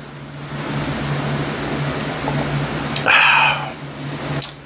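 A man sips a drink with a slurp.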